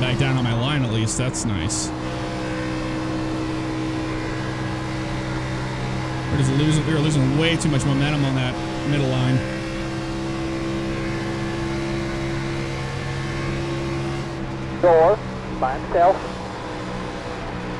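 A race car engine drones steadily at high speed.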